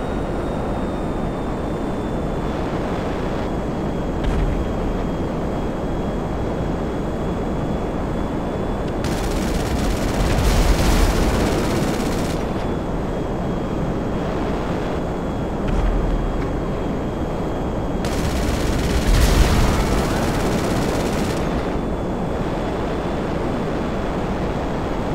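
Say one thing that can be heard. A jet engine roars steadily, swelling louder at times.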